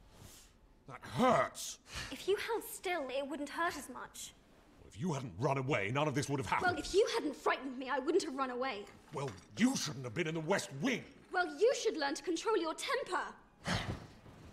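A young woman speaks urgently and with emotion, close by.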